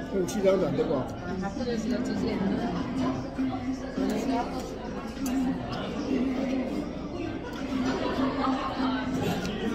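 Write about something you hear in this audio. A fork scrapes and clinks against a metal pan.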